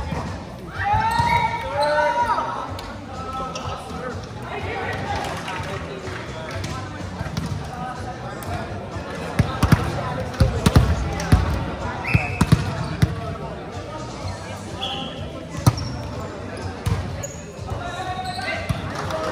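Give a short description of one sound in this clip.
Players shout and call out to each other in a large echoing hall.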